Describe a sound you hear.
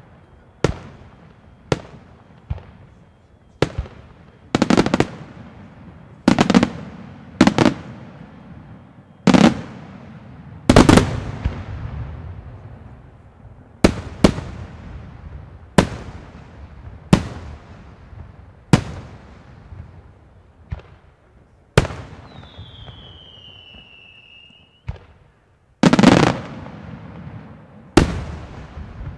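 Fireworks burst with loud booms that echo across open air.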